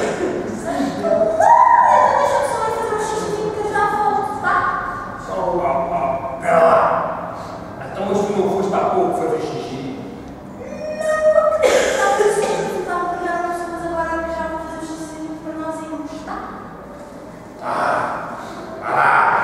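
A woman sings along.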